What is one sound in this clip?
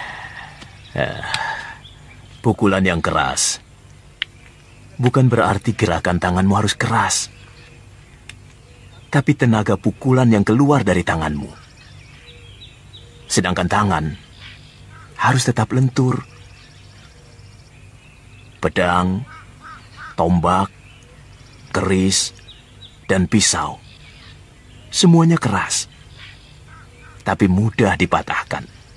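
An elderly man speaks with emotion, close by.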